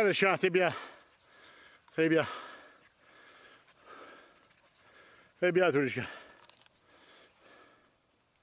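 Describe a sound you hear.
Dogs rustle through dry grass.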